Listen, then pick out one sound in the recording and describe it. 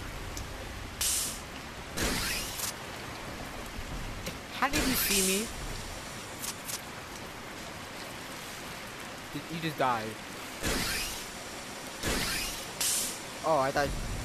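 Grappling cables shoot out and whoosh through the air.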